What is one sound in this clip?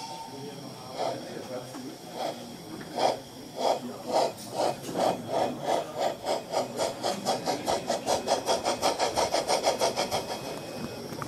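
A model steam locomotive puffs and chuffs in a quickening rhythm.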